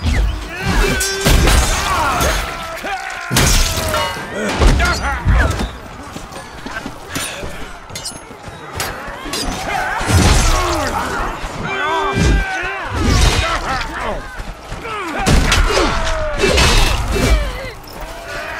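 Metal weapons clash and strike with sharp, heavy impacts.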